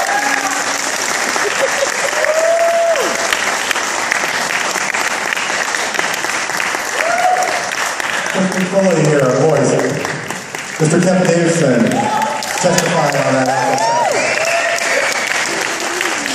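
A big band of brass and saxophones plays jazz in a large hall.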